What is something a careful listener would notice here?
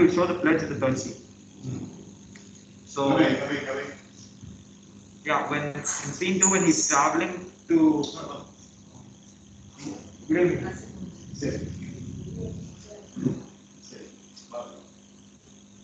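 Young men talk in short bursts close by, heard through an online call.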